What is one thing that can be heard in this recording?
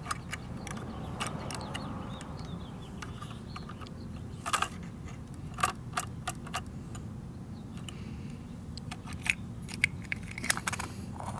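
Small plastic parts click and clatter as a toy garbage truck's arms are moved by hand.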